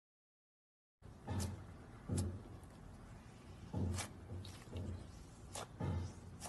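Soft slime squelches and pops under pressing fingers.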